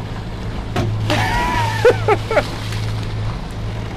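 A body splashes into the water.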